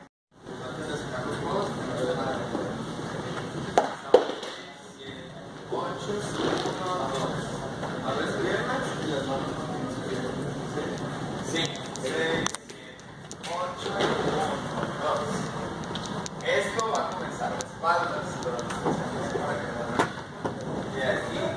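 Dancers' shoes tap and shuffle on a wooden floor.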